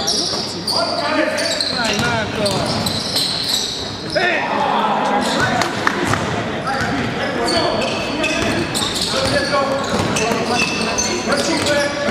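Sneakers squeak sharply on a court floor in a large echoing hall.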